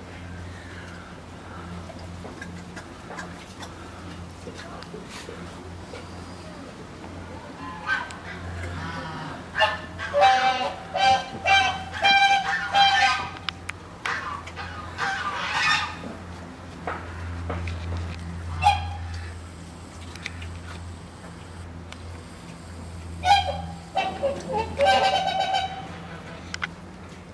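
A bear chews and crunches food noisily, close by.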